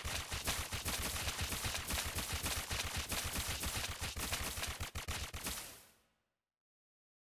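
Fast magic blasts and blows crackle and thump in a fight.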